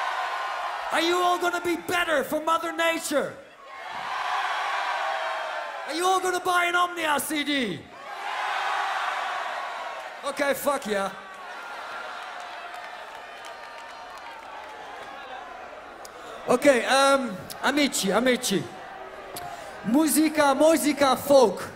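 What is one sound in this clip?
A man calls out loudly over a loudspeaker.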